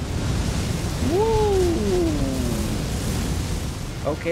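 A huge dragon lets out a deep, falling roar.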